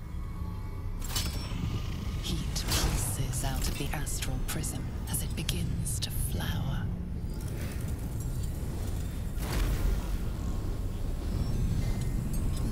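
Magical bursts crackle and whoosh loudly.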